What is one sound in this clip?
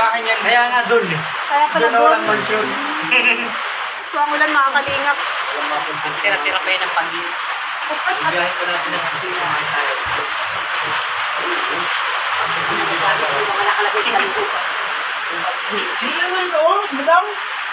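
A woman talks close by, casually.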